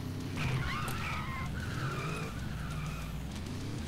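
Tyres screech on a smooth floor.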